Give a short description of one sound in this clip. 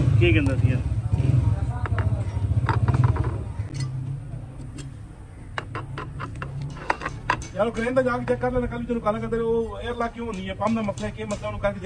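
Metal rings clink as they are lifted off a gear.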